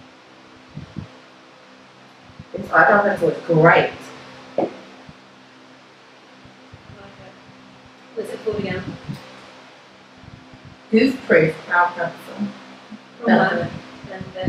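A second young woman talks and laughs close by.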